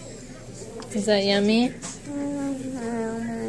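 A small child speaks softly and close by.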